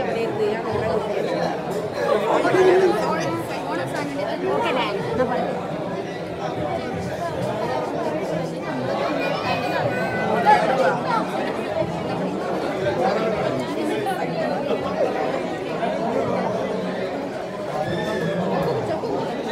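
A crowd of women and men chatter close by.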